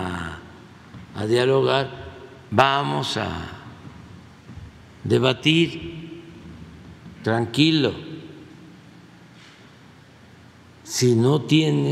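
An elderly man speaks slowly in short phrases into a microphone, in a room with some echo.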